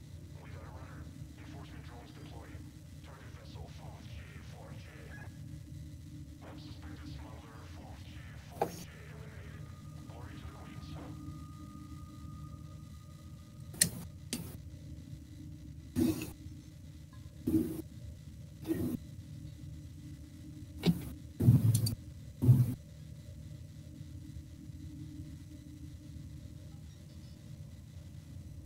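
A spaceship's engines hum low and steadily.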